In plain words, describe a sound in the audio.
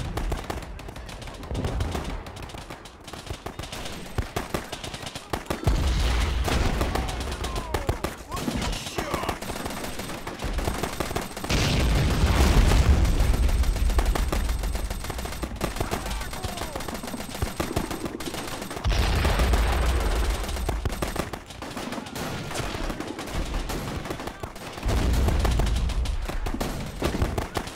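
Gunfire crackles in short bursts throughout.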